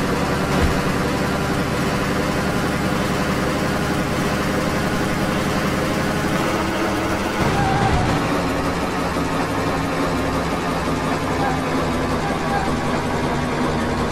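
A truck engine drones steadily as the truck drives along.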